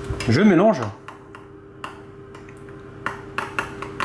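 A metal spoon clinks against a glass bowl as it stirs.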